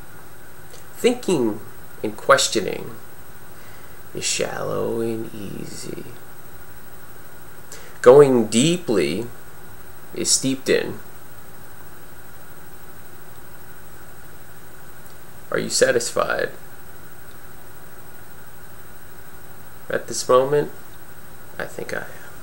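A man speaks calmly and slowly in short bursts, close to a microphone.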